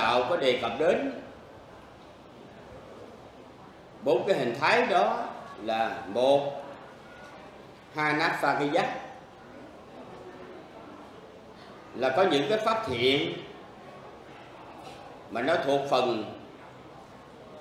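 A middle-aged man speaks calmly into a microphone in short phrases with pauses.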